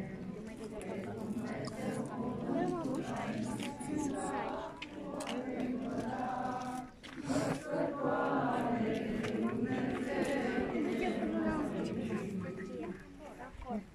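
A crowd of men and women chant or sing together outdoors.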